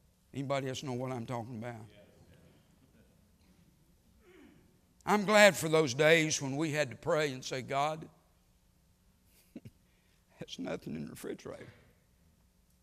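A middle-aged man speaks with animation into a microphone.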